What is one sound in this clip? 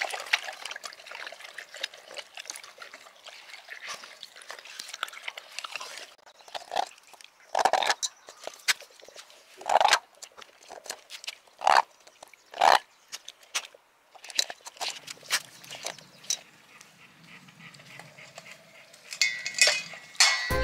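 A dog laps water noisily from a metal bowl.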